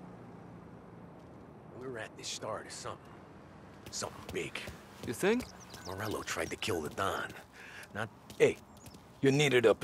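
Footsteps walk on pavement.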